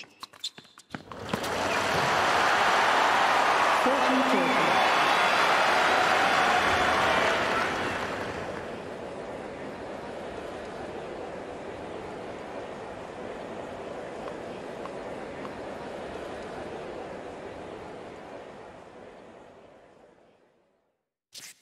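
A large crowd cheers and applauds loudly, then slowly fades.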